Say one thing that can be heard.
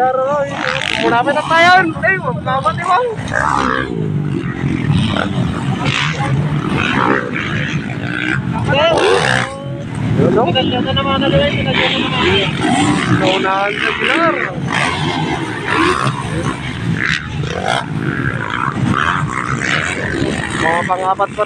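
Dirt bike engines rev loudly, rising and falling in pitch as the bikes race and jump nearby, outdoors.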